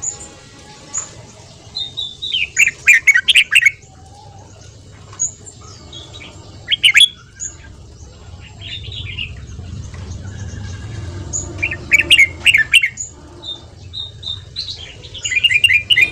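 A songbird sings loud, sharp bursts of chirps close by.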